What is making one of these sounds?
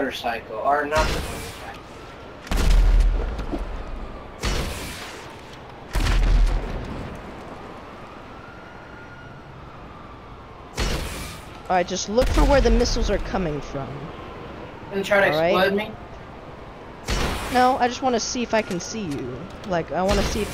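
Explosions boom in loud bursts.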